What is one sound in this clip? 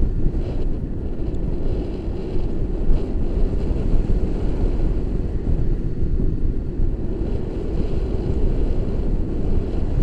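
Strong wind rushes and buffets loudly throughout.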